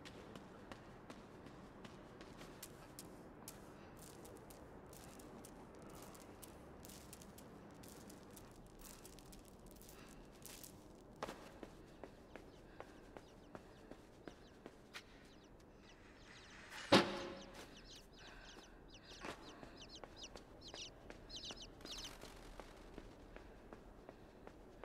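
Footsteps patter softly on a hard floor.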